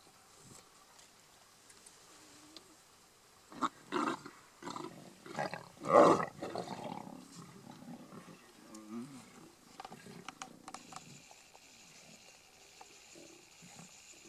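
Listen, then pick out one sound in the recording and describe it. Lions tear and chew at meat.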